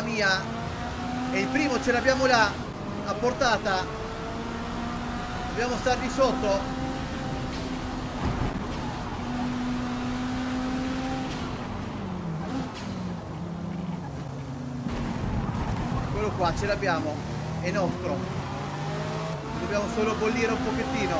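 A race car engine roars steadily and shifts pitch as the car speeds up and slows down.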